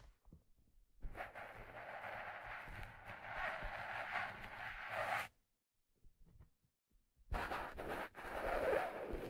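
Fingertips scratch and rub a rubbery surface close to a microphone.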